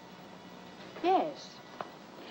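A young woman answers briefly.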